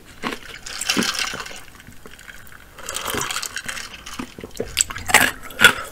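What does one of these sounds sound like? A woman sips a drink and swallows close to a microphone.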